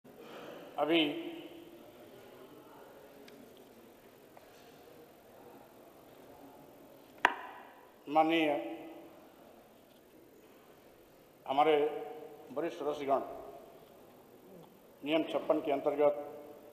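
A middle-aged man speaks in short bursts through a microphone in an echoing hall.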